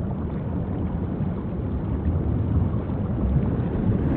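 A whale's tail splashes down into the water.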